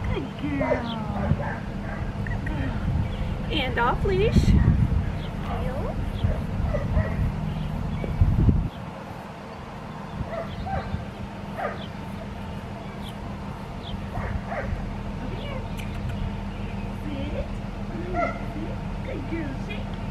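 A woman talks encouragingly to a dog nearby.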